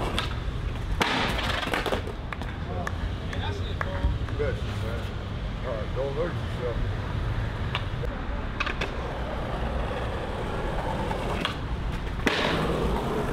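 A skateboard board slaps down hard on the ground.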